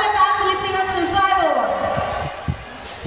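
A young woman sings into a microphone over loud speakers in a large hall.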